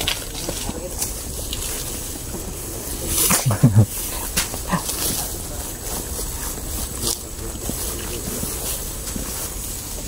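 Footsteps swish through tall grass and brush.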